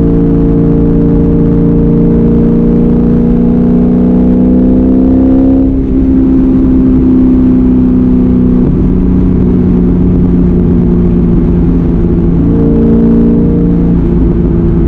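A car engine roars loudly, rising in pitch and dropping sharply with each gear change.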